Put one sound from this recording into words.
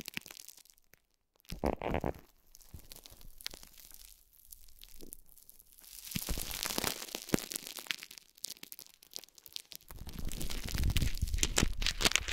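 Fingers crinkle and press plastic wrap close up.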